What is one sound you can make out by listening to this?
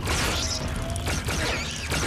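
Blaster shots fire loudly in quick bursts.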